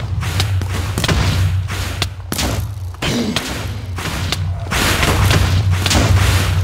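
A monster roars and rumbles loudly.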